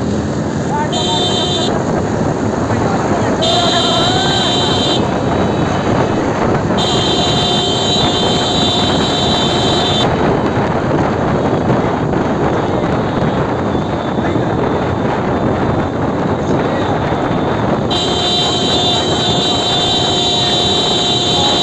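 Motorcycle horns honk repeatedly in long blasts.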